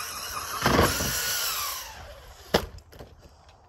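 A remote-control car lands hard with a clattering thud.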